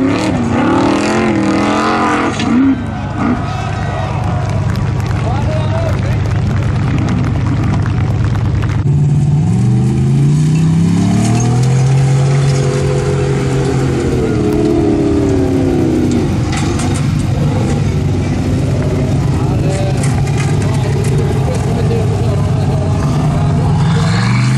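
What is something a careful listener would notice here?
An off-road vehicle's engine roars and revs hard as it climbs.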